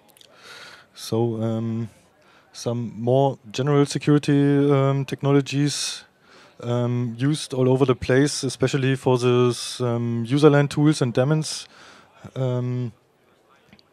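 A young man speaks calmly into a microphone, heard through a loudspeaker.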